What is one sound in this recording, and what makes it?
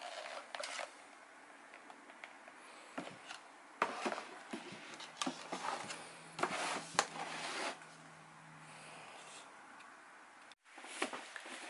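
A helmet rustles and knocks against a cardboard box as it is handled.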